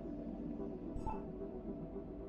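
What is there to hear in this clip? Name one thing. A short soft chime sounds as a menu selection changes.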